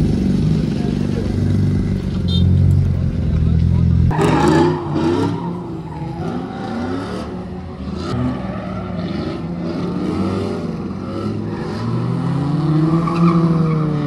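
A car engine roars and revs hard nearby.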